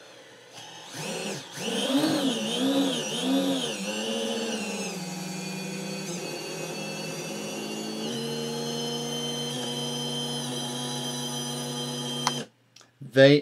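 Small electric motors whine, their pitch wavering up and down and then holding steady.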